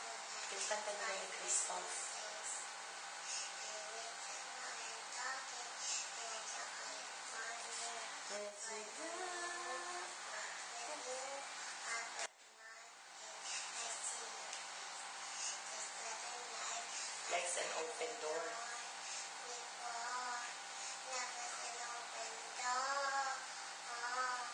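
A young girl speaks close by, in a lively, sing-song way.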